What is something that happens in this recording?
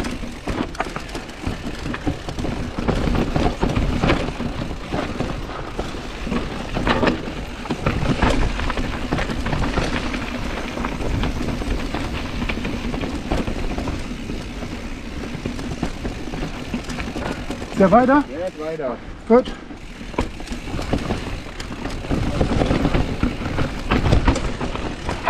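A bicycle rattles and clatters over bumps and roots.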